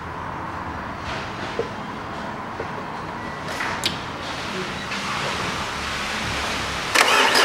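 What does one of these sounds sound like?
A car engine idles with a steady, even rumble.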